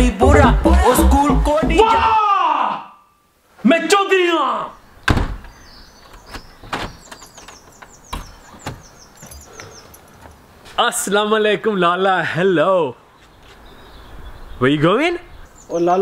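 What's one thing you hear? A young man speaks loudly and with animation, close by.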